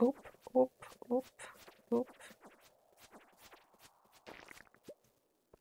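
Short game sound effects of a sword swinging whoosh repeatedly.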